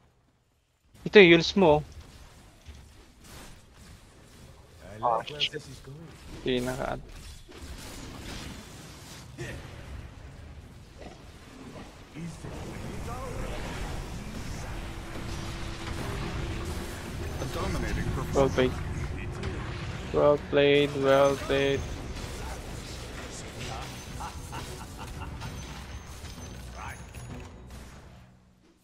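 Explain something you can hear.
Magic spells burst and crackle in a fantasy battle.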